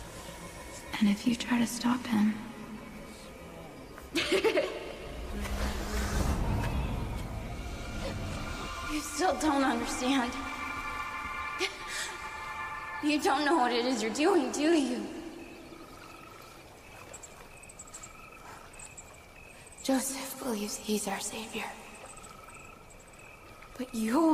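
A young woman speaks softly and eerily, close by.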